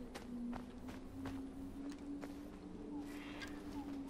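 Bare branches rustle and scrape as they are pushed aside.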